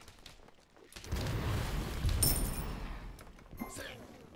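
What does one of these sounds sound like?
A magic blast whooshes and rumbles in a game.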